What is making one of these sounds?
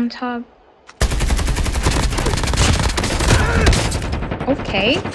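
A heavy gun fires in rapid loud bursts.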